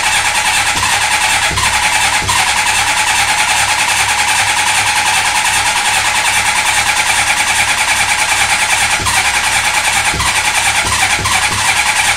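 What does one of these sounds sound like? A motorcycle engine idles steadily close by.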